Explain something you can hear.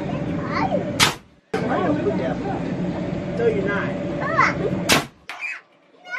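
An air cannon fires with a sharp, loud blast.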